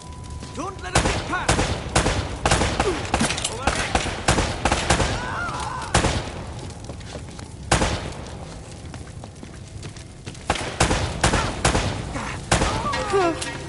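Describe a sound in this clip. Pistol shots ring out in quick bursts with echoes.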